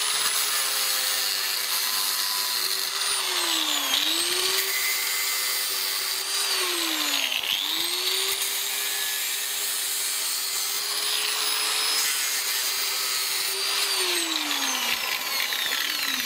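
An angle grinder whines and grinds against metal, its pitch dipping as it bites and rising again.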